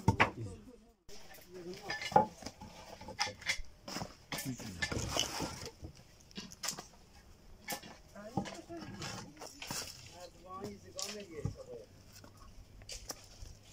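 Wooden planks clatter and knock as they are stacked.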